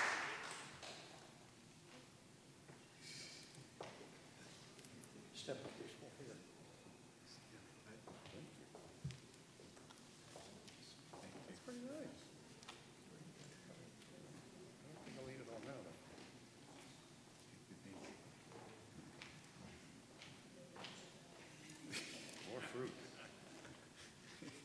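An elderly man speaks quietly in a large echoing hall.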